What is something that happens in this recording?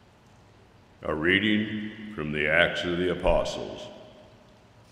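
An elderly man speaks calmly into a microphone in a large echoing room.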